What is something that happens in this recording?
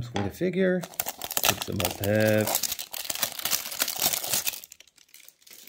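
Plastic packaging crinkles and rustles close by.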